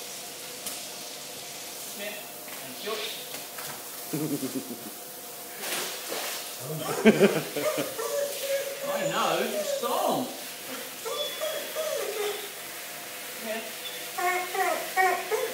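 Water sprays from a shower head and splashes on a tiled floor.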